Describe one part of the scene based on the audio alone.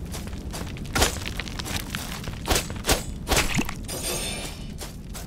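A sword swishes and strikes with sharp hits.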